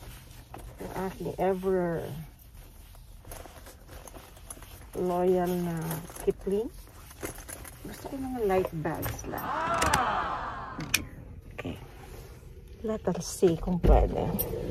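A woman talks calmly through a face mask, close by.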